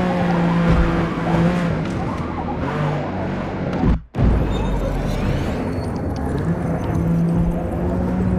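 A car engine roars steadily, shifting pitch as the car accelerates and slows.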